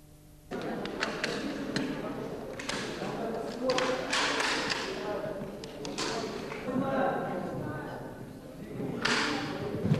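Rifle parts click as they are handled.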